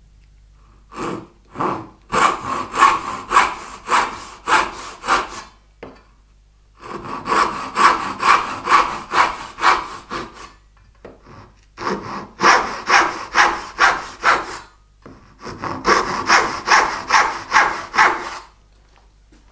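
A hand saw cuts wood in quick, rhythmic strokes, in several bursts.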